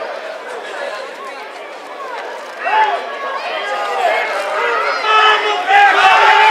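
A crowd of men shouts and cheers outdoors, growing louder.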